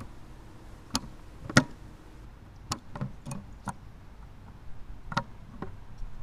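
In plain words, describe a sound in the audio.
Small plastic parts click and tap in someone's hands.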